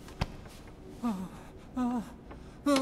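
A young woman groans in pain.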